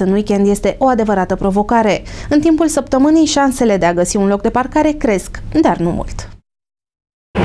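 A woman speaks clearly into a microphone like a news presenter.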